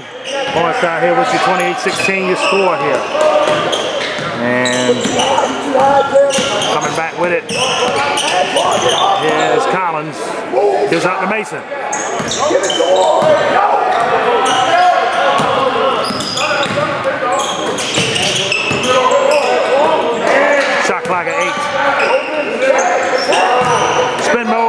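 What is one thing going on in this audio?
Basketball shoes squeak sharply on a hardwood floor.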